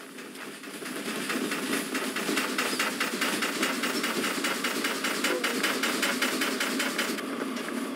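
A steam locomotive hisses steadily close by.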